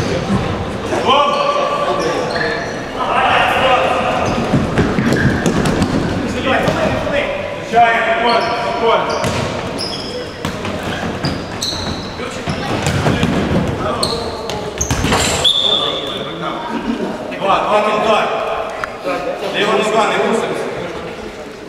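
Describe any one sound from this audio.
Men shout across the court with animation.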